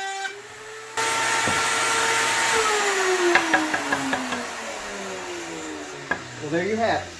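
A table saw motor winds down with a falling whine.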